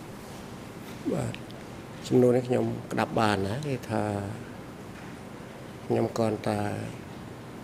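An elderly man speaks slowly into a microphone, in short bursts.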